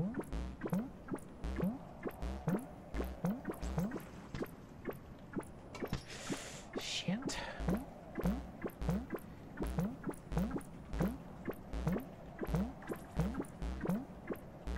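Bubbles pop with short rising blips, over and over in a steady rhythm.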